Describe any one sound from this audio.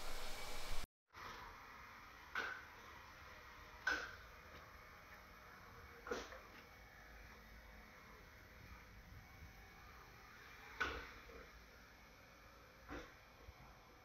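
A robot vacuum whirs softly as it moves across the floor.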